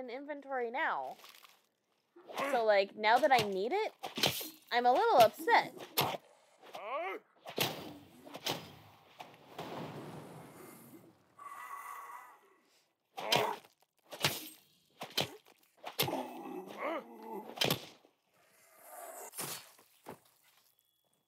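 Heavy blows thud and squelch in a fight.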